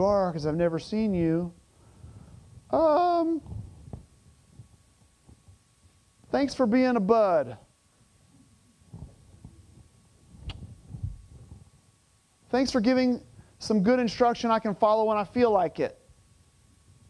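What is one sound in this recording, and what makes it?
A middle-aged man speaks with animation through a microphone, in bursts with pauses.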